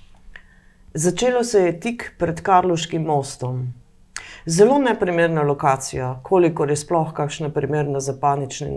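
An older woman reads aloud calmly into a microphone, close by.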